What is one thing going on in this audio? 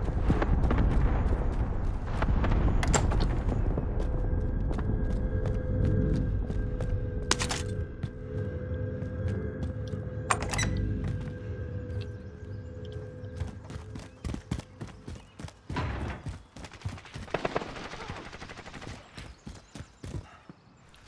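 Quick footsteps thud on hard ground.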